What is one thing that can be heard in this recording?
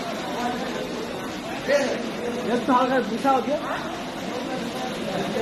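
A crowd murmurs and chatters in an echoing hall.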